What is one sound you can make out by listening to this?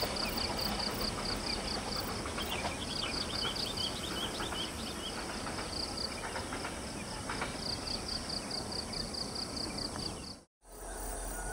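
A freight train rumbles along the tracks in the distance.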